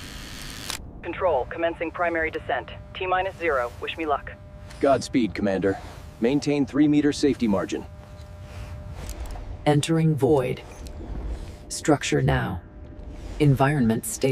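A man speaks calmly over a helmet radio.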